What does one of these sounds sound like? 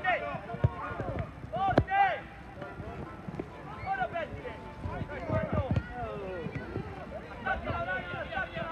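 Young children shout and call out across an open field.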